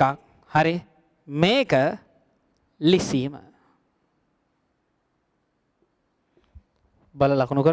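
A man speaks calmly and clearly into a microphone, pausing between phrases.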